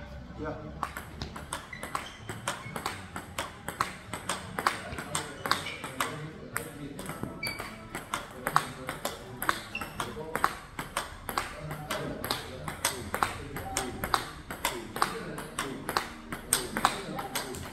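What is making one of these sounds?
A table tennis ball bounces on a table.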